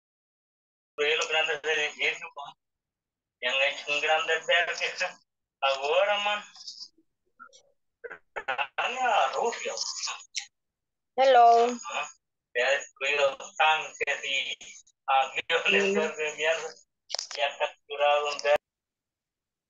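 A middle-aged woman talks calmly over an online call.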